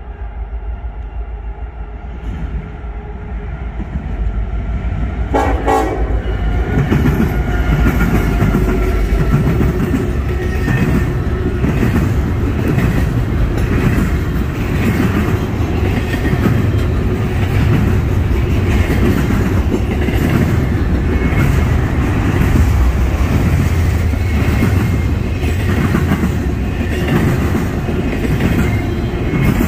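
A freight train's engines rumble as the train approaches and passes close by.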